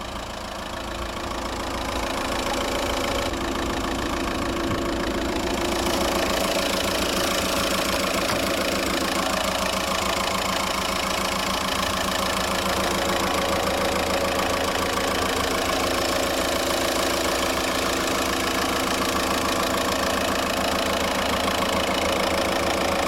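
A four-cylinder 1.9-litre TDI diesel engine idles with a steady clatter, heard close up.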